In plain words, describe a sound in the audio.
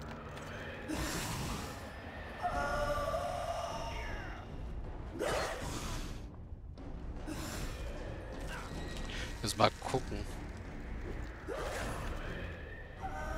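Fire magic whooshes and crackles.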